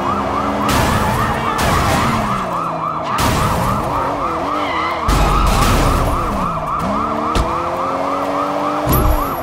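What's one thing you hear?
A car engine revs up and down.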